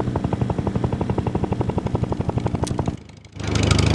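Helicopter rotor blades chop rapidly.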